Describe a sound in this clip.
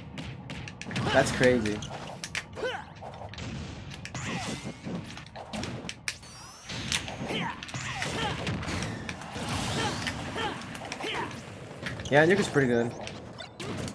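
Cartoon fighters cry out with short shouts during attacks.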